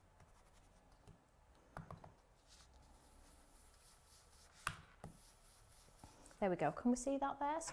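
A foam ink tool softly dabs and taps on paper.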